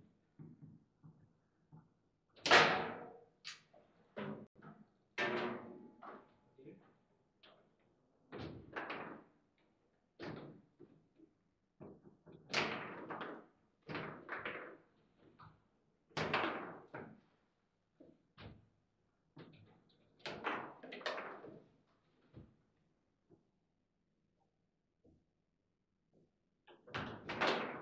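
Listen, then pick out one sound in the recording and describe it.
A ball clacks and rods knock sharply on a table football table.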